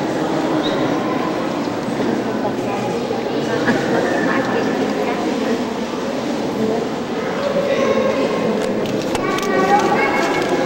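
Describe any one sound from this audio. A group of adults murmurs and talks in an echoing room.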